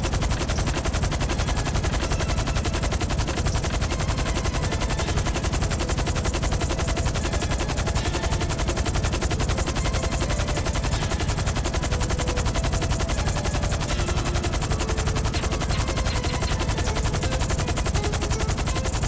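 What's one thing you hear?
The blades of a twin-rotor cargo helicopter thump rapidly in flight.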